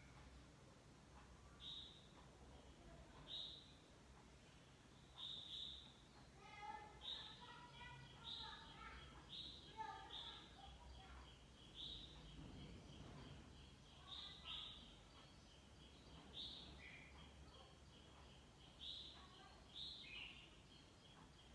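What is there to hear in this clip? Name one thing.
A television plays across the room, heard faintly.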